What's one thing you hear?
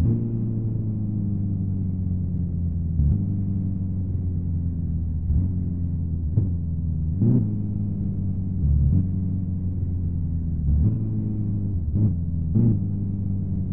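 A car engine idles with a low steady hum, with short revs now and then.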